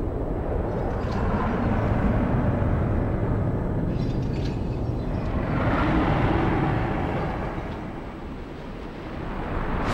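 A monster roars loudly.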